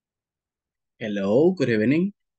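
A young man speaks briefly and calmly over an online call.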